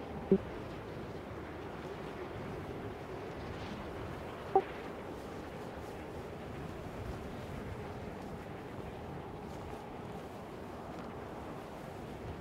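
Wind rushes steadily during a glide through the air.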